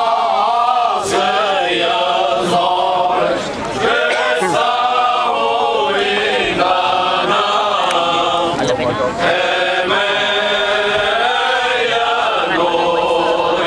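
A choir of men sings together close by, outdoors.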